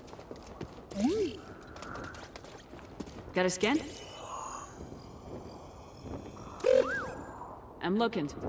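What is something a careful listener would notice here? A small robot chirps and warbles in rising and falling beeps.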